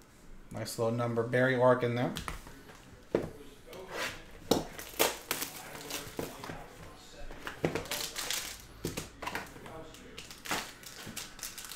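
Plastic card cases and cardboard boxes click and rustle as hands handle them.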